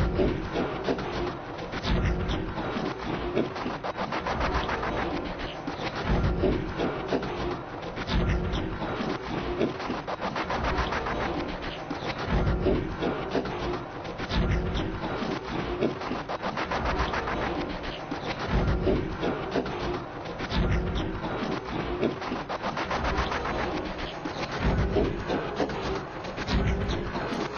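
A car engine roars as the car races and skids.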